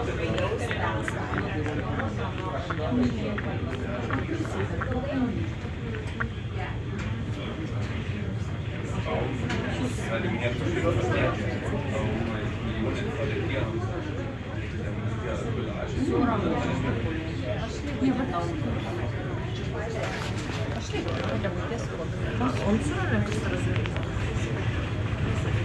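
A boat's engine rumbles low and steady.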